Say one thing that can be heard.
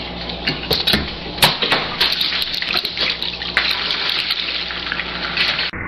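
Thick liquid gushes and splatters onto a table.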